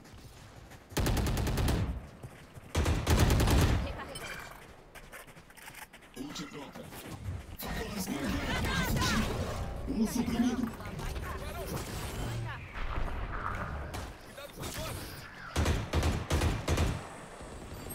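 A rifle fires in short bursts of gunshots.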